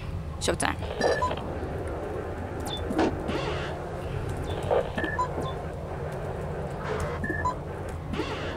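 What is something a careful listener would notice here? Short electronic beeps sound now and then.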